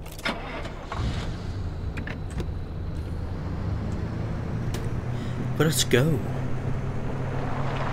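A car engine starts and hums steadily.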